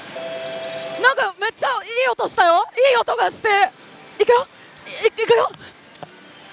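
A young woman speaks excitedly up close.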